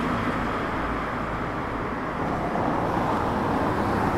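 A car drives slowly along a street nearby.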